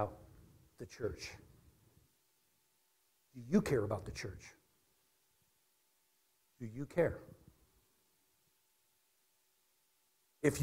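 A middle-aged man speaks with animation through a microphone in a large echoing room, pausing between phrases.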